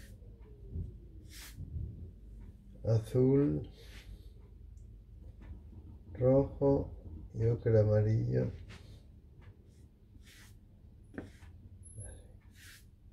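A paintbrush swishes across paper.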